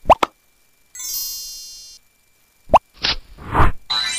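A toy hammer knocks on pegs with bright chiming tones.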